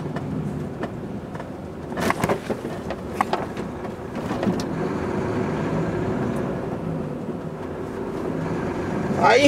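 A truck's cab rattles and creaks as it rolls over the road.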